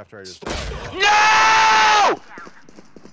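A young man screams in dismay into a microphone.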